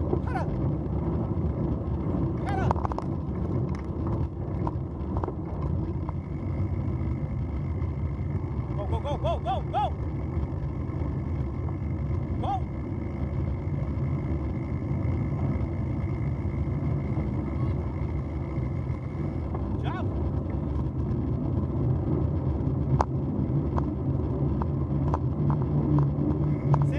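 Bicycle tyres roll and crunch steadily over a gravel path.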